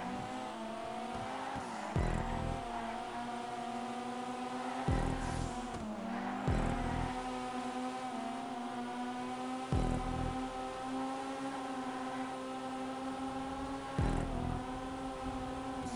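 A car engine revs high and steady.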